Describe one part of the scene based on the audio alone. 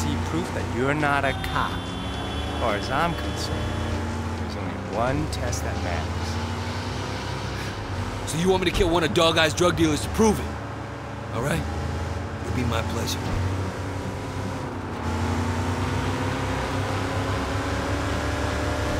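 A car engine hums steadily as a car drives along.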